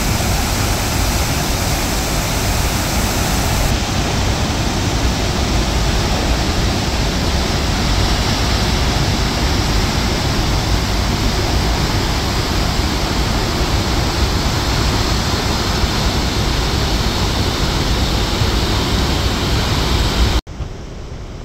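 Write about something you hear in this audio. Water roars loudly as it gushes through open floodgates.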